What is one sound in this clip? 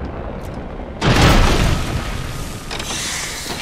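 A heavy object crashes to the ground with a loud boom and a hiss of rushing air.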